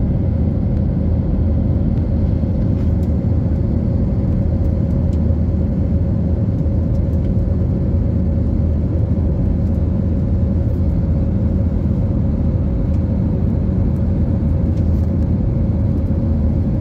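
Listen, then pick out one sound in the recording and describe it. Jet engines roar steadily with a low, constant hum inside an airliner cabin.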